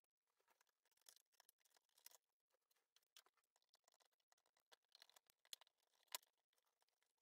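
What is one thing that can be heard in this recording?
Hands click and rustle against plastic parts.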